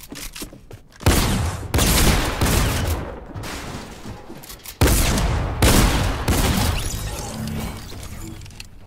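Gunshots boom loudly in rapid bursts.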